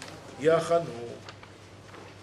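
An older man speaks into a microphone in a drawn-out voice, then falls quiet.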